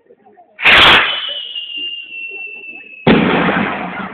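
A skyrocket whistles as it climbs away.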